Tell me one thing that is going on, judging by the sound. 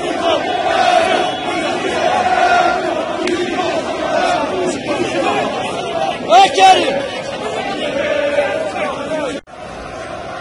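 A large crowd of men chants loudly outdoors close by.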